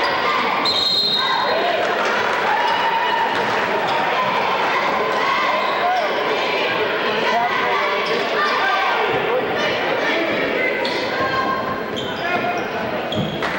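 A crowd of spectators chatters steadily in a large echoing gym.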